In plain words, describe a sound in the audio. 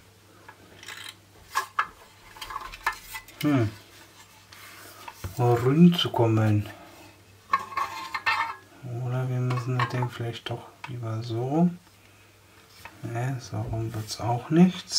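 Hard plastic parts click and knock as they are handled close by.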